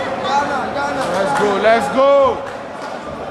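A crowd of men sings and chants loudly in an echoing hall.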